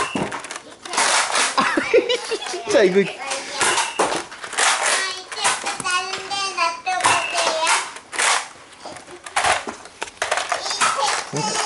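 A toy foam blaster clacks and rattles as it is handled.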